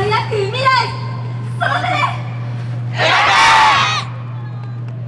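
Young men shout loudly in unison outdoors.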